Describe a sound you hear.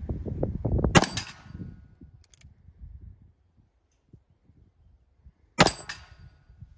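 A handgun fires loud single shots outdoors.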